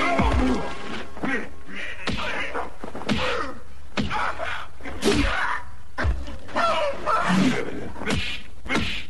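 Heavy punches thud in a scuffle.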